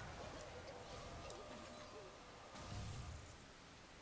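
A magical spell effect whooshes and sparkles.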